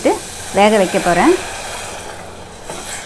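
Milk pours into a metal pot with a splashing gurgle.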